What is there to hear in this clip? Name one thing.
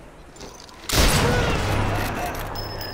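A rifle shot cracks loudly and echoes.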